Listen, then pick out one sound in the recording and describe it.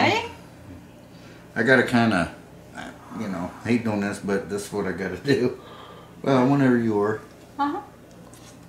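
A middle-aged man talks casually close by.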